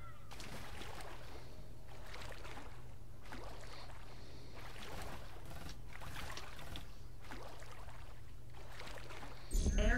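Water splashes softly as a game character swims.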